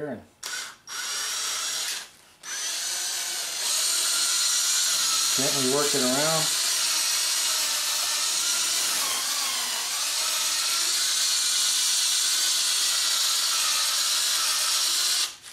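A cordless drill whirs steadily as a foam pad buffs a surface.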